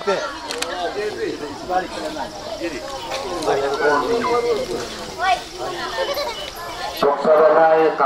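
A man speaks through a microphone and loudspeaker outdoors.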